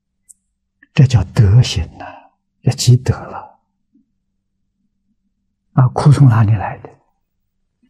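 An elderly man speaks calmly and closely into a microphone, in short phrases with pauses.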